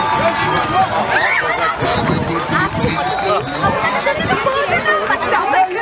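Young children shout and call out on an open field outdoors.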